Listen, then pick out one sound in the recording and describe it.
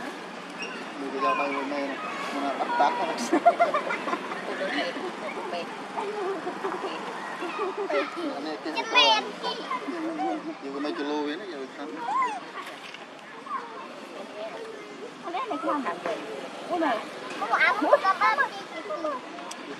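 A young monkey squeals and chatters nearby.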